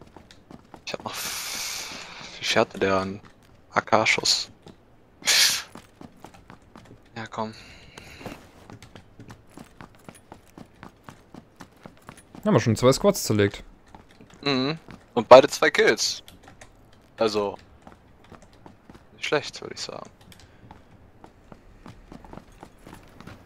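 Footsteps run across a hard floor.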